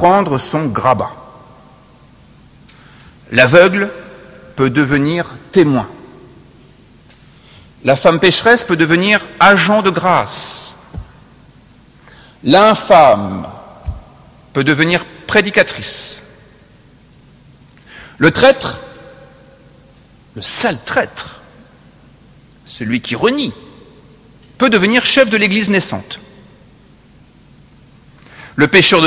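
A man speaks slowly and deliberately into a microphone, with pauses between phrases, echoing in a large reverberant hall.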